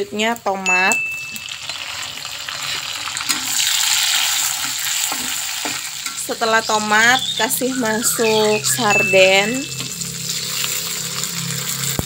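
Food sizzles loudly in hot oil.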